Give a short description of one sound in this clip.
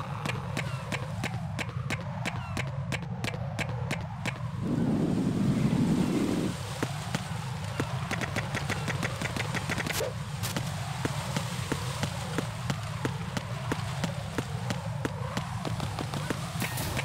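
Quick footsteps run across a hard metal floor.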